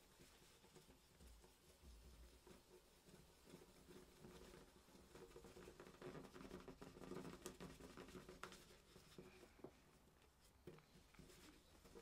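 Fingertips tap and scrape against a small plastic frame.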